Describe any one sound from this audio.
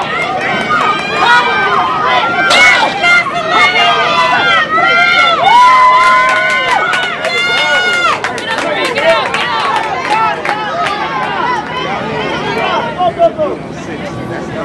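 A crowd of spectators cheers and screams loudly outdoors.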